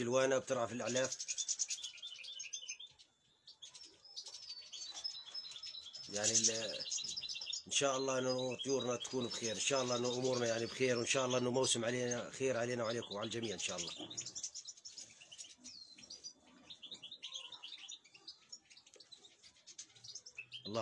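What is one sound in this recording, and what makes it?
Many small birds chirp and twitter close by.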